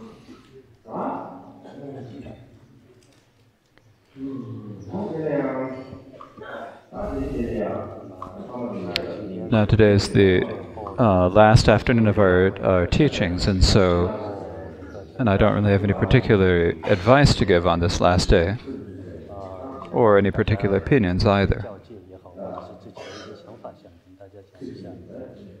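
A man speaks calmly and steadily into a microphone.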